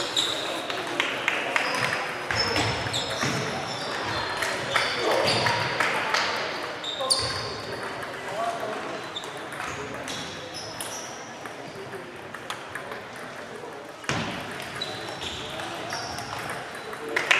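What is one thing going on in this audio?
A crowd of players murmurs and calls out in the distance.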